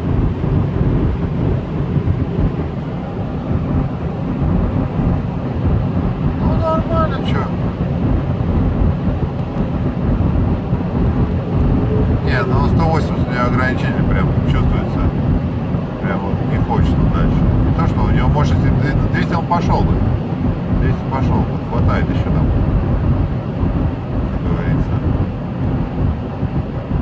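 Tyres roar steadily on the road.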